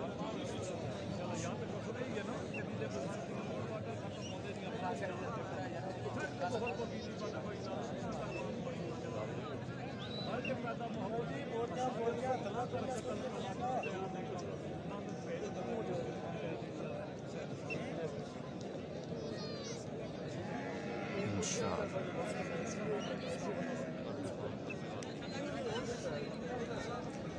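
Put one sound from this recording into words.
A crowd of men talks and calls out at a distance, outdoors.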